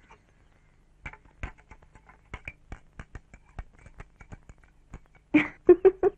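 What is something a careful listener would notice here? A spoon clinks against a mug while stirring.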